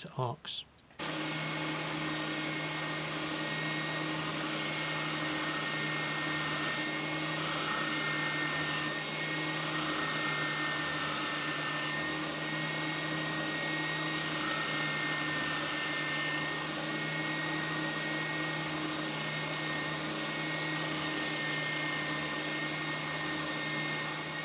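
A spindle sander hums steadily.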